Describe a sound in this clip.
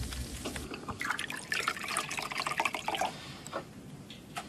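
Water pours into a glass.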